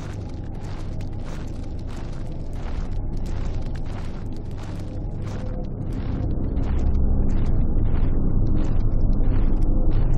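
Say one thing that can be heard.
Torch flames crackle softly nearby.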